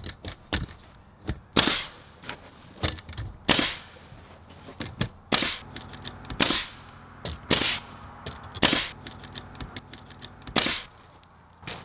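A pneumatic nail gun fires nails into wood in quick bursts.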